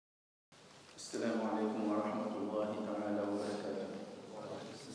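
A man speaks calmly and quietly into a microphone.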